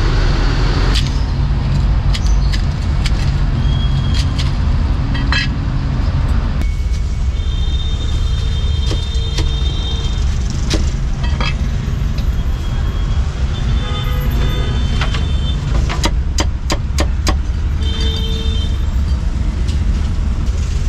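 A cleaver chops sharply on a wooden block.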